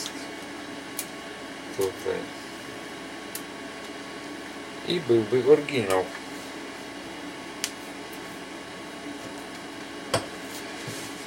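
Small metal parts click and tap.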